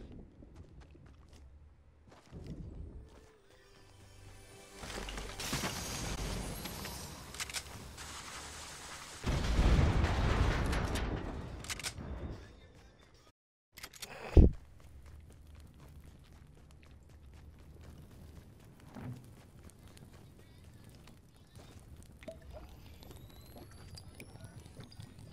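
Footsteps patter as a game character runs on stone.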